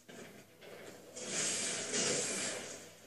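A loud explosion booms from a television speaker.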